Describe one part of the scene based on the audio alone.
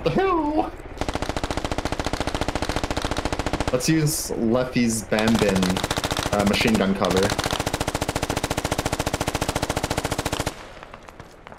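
A machine gun fires in a rapid, steady burst.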